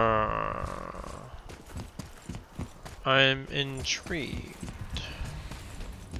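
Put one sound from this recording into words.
Heavy footsteps run across stone.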